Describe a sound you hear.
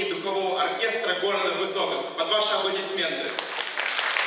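A man speaks through a microphone and loudspeakers in a large hall, announcing with animation.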